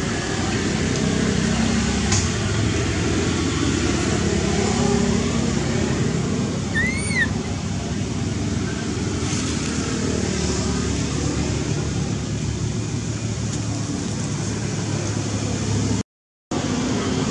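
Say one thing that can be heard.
Water trickles and splashes nearby.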